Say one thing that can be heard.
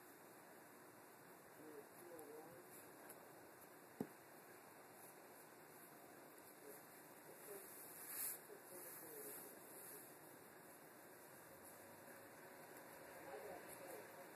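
A small glass piece clicks softly against a table.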